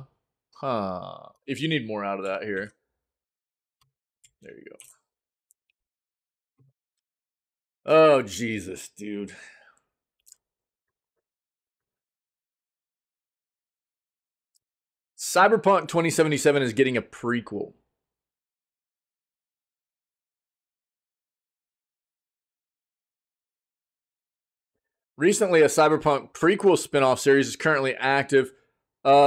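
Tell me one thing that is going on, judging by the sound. A man talks with animation into a close microphone, in short bursts with long pauses.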